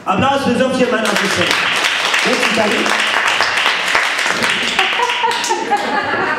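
An audience laughs and applauds.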